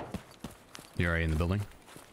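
A man speaks into a close microphone.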